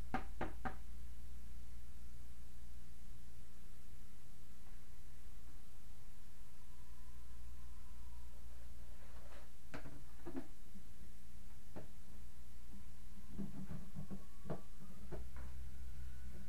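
Small objects knock and clatter on a table.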